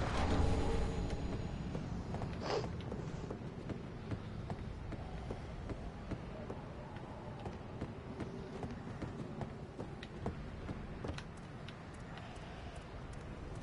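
Footsteps tread over wooden planks and stone.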